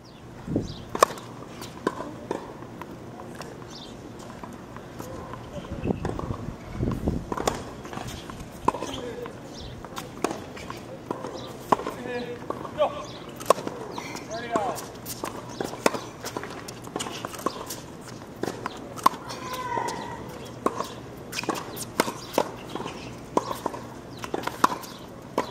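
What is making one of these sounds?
A tennis racket strikes a ball with sharp pops, again and again.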